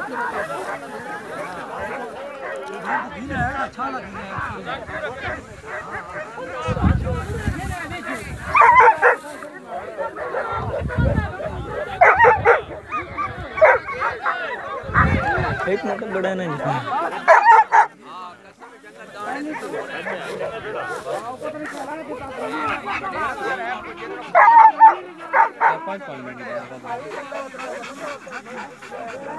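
Men talk with animation close by outdoors.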